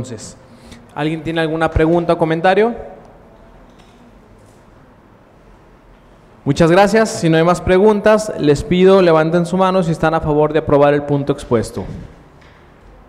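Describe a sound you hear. A man speaks calmly into a microphone in a room with a slight echo.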